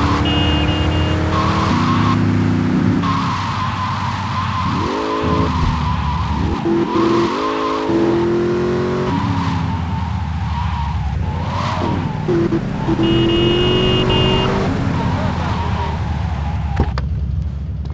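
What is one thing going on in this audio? A sports car engine revs up and down.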